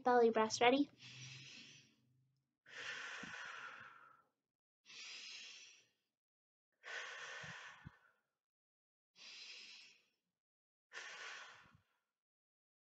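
A young woman breathes slowly and deeply in and out.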